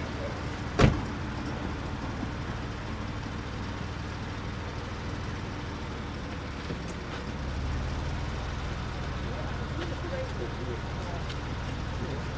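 A car engine idles and rumbles as the car pulls away.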